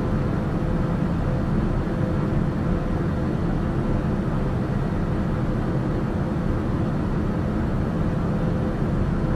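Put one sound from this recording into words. A single-engine propeller plane's engine drones steadily in cruise, heard from inside the cabin.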